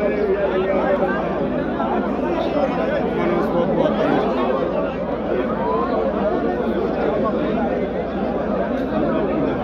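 A crowd of men talk loudly over one another close by.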